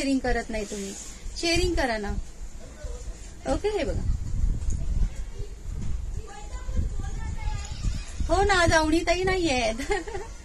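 A middle-aged woman speaks with animation close by.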